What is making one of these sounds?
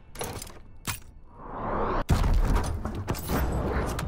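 A crate bursts open with a loud whoosh of smoke.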